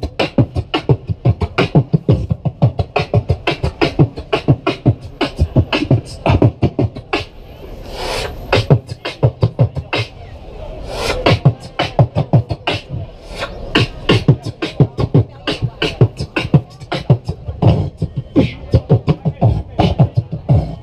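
A young man beatboxes rhythmically into a microphone, heard through loudspeakers outdoors.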